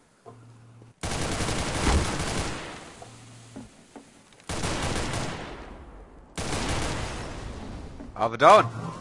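A rifle fires loud rapid bursts of shots.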